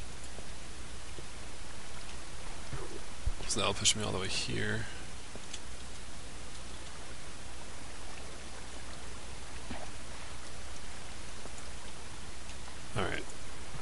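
Water flows steadily.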